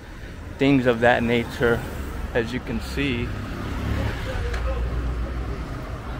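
Cars and a motorbike drive past on a street outdoors.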